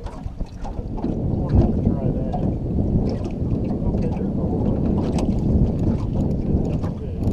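A boat's motor rumbles steadily.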